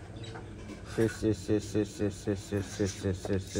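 A young girl gulps a drink in quick, regular swallows.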